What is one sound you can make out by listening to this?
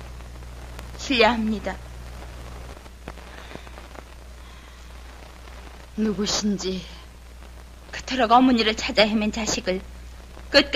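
A young woman speaks tensely nearby.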